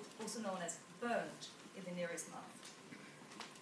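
A young woman speaks calmly to an audience.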